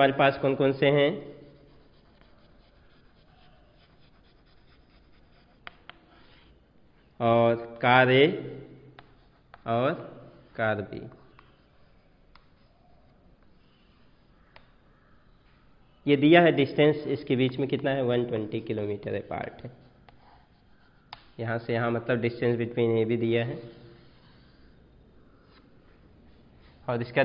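A man speaks calmly, explaining, with pauses between phrases.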